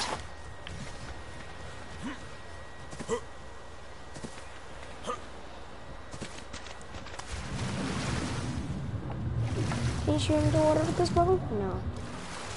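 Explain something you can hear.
Gentle waves lap at a sandy shore.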